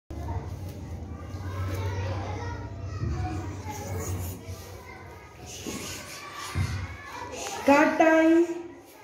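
Young children chatter close by.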